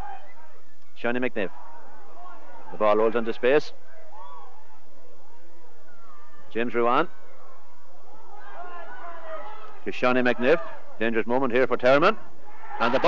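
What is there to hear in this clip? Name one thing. A man shouts loudly and excitedly nearby.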